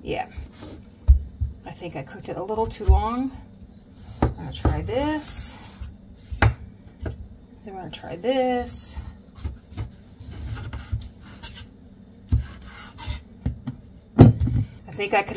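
A knife chops through firm vegetables, thudding on a wooden board.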